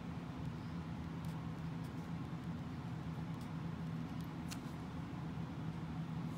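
A marker pen squeaks and scratches on paper.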